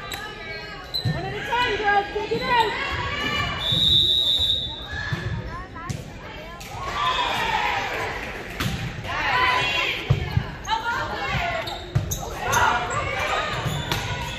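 A volleyball thuds off a player's arms.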